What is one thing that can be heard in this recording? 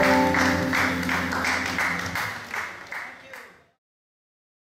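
A band plays a held final chord that fades away.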